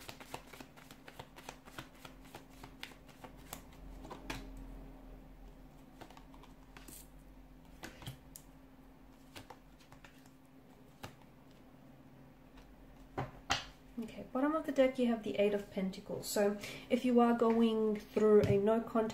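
Playing cards flick and riffle as they are shuffled close by.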